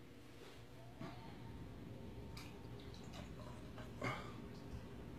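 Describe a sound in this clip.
Tea pours from a kettle into a glass.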